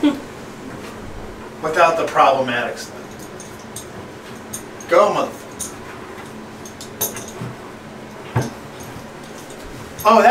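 A metal shower rod clanks as it is fitted to the wall.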